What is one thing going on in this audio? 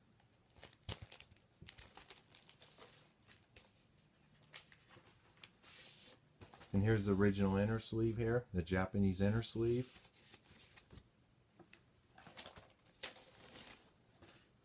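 Paper and cardboard sleeves rustle as they are handled.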